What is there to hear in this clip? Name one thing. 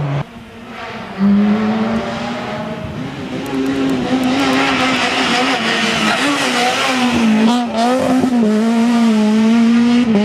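A rally car engine roars loudly, revving up and down as it shifts gears.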